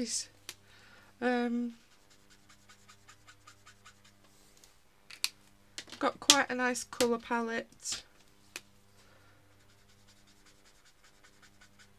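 A felt marker scratches softly across paper.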